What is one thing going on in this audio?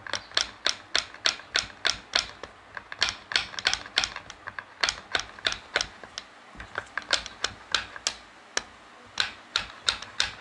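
A hammer handle taps rapidly and sharply against a metal piston.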